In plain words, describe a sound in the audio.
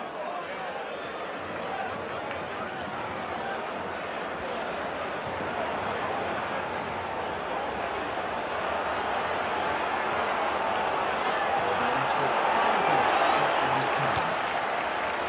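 A stadium crowd roars and chants steadily, slowly growing louder.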